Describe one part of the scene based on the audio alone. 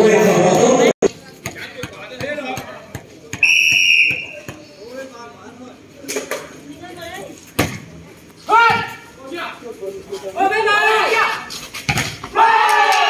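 A ball thumps as players strike it.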